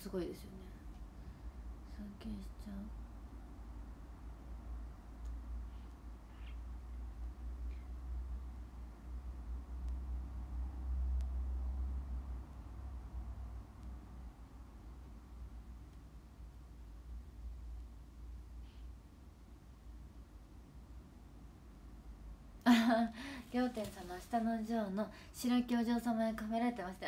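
A young woman speaks close to a microphone, with animation.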